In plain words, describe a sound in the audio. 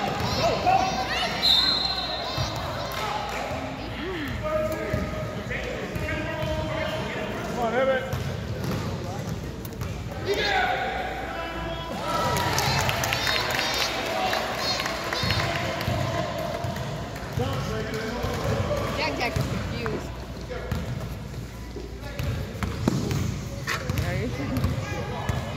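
Spectators and players talk and shout nearby in a large echoing hall.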